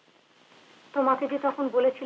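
A man speaks loudly and firmly close by.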